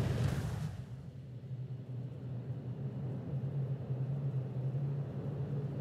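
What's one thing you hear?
A spacecraft's engines hum low and steady.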